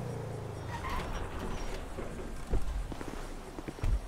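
A car door opens with a thud.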